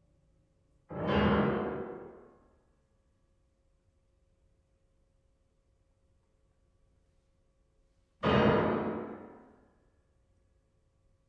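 A piano strikes two loud chords that ring out and fade.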